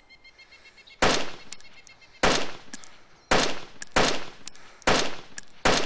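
Rifle shots ring out one at a time, each followed by a rolling echo.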